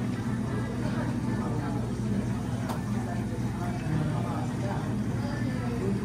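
Espresso pours into a cup of ice.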